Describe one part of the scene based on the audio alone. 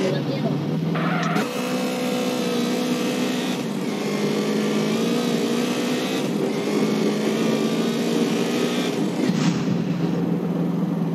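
A motorcycle engine drones steadily, its pitch rising and falling as it speeds along.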